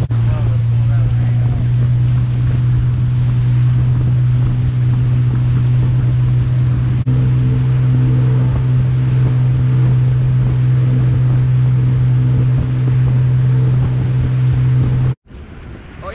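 Churning water rushes in a boat's wake.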